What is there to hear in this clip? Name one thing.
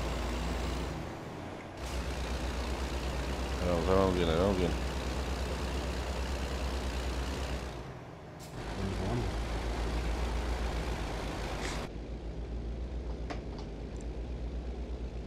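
A diesel semi truck engine drones as the truck cruises along a road.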